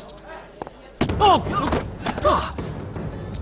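Bodies thud and scuffle on the ground.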